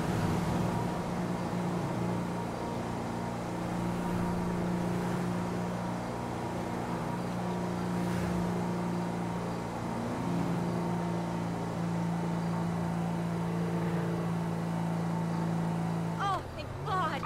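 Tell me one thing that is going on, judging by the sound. A car engine runs at speed.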